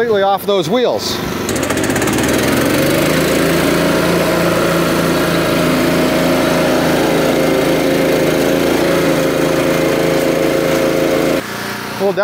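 A small engine runs with a steady drone.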